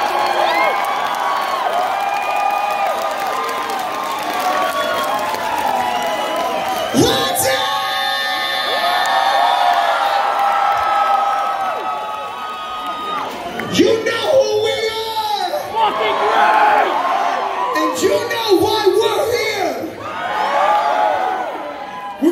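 A rock band plays loudly through big speakers in a large echoing hall.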